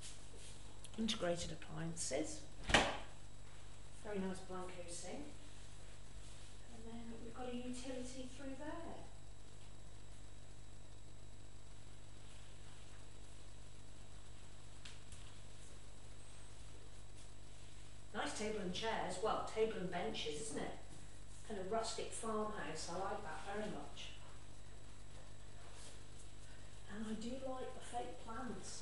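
A middle-aged woman talks casually nearby.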